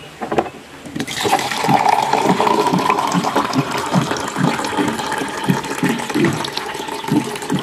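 Water pours from a tap into a plastic cup.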